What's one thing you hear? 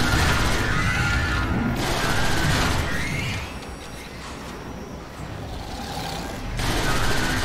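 A spacecraft's engines roar loudly as it flies at speed.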